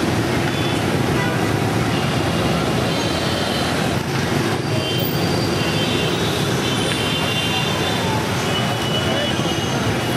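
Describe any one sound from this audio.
Car and motorbike horns beep now and then.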